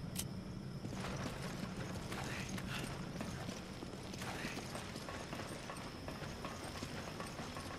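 Footsteps thud on a hard floor as a man walks.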